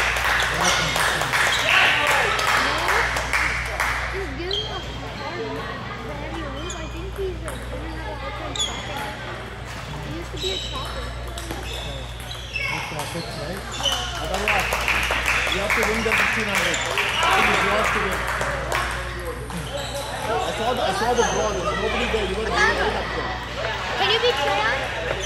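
Ping-pong balls click on tables and paddles in a large echoing hall.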